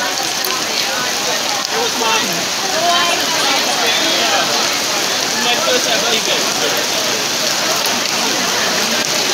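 Heavy rain pours down outdoors with a steady hiss.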